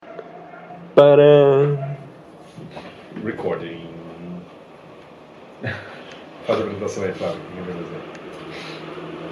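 Two young men talk with animation close by.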